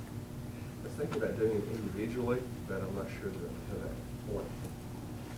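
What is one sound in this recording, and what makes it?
An elderly man calls out instructions across a large room.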